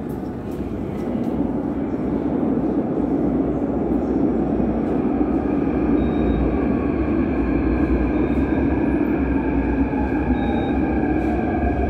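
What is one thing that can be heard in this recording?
A subway train rumbles into an echoing underground station, growing louder.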